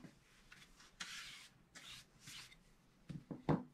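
A brush sweeps lightly across paper.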